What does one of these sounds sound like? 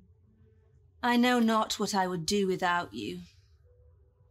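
A young woman speaks gently, close by.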